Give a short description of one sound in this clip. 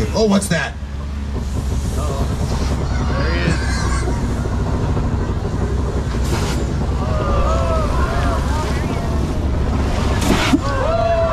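A ride vehicle rumbles along steadily.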